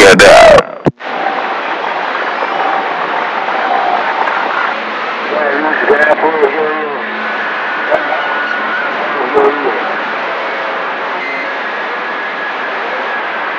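A radio hisses softly with faint whining tones.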